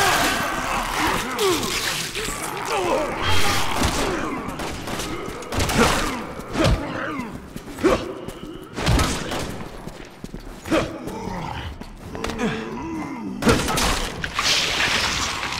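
Heavy blows land with dull thuds during a scuffle.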